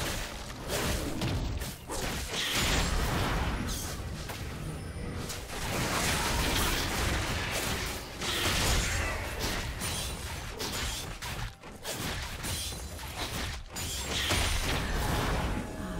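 Video game combat effects crackle and whoosh as characters fight.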